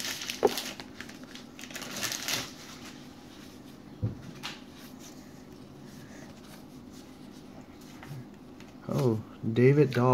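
Trading cards slide and flick against each other in the hands.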